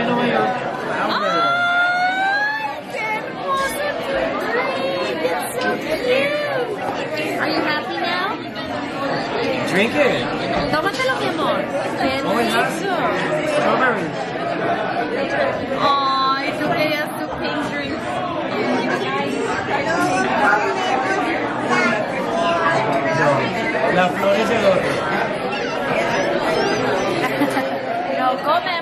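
Many people chatter in a busy, echoing room.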